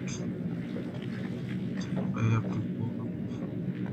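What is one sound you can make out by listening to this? A heavy body scrapes and drags across a hard floor.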